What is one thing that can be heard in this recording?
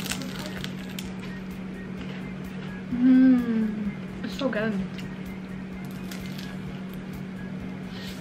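A young woman bites and crunches a crispy roll up close.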